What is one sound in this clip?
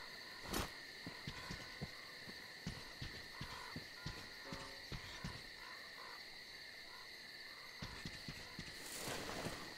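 Slow footsteps tread on soft ground.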